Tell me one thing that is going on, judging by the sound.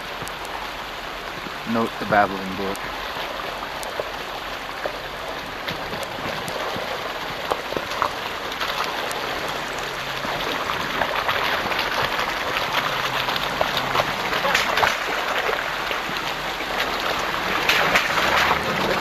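An engine rumbles as a vehicle slowly drives closer.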